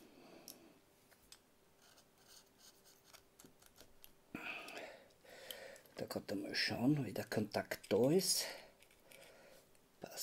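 A small metal tool clicks and scrapes against a plastic part.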